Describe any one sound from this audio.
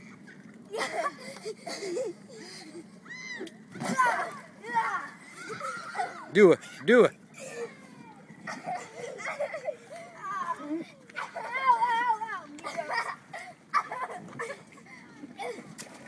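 A young girl laughs and squeals close by.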